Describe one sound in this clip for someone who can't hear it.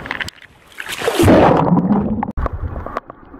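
Water splashes and rushes in bubbles.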